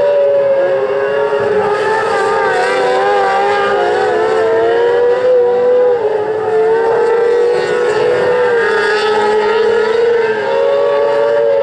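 Several race car engines roar and whine loudly around a dirt track, rising and falling in pitch.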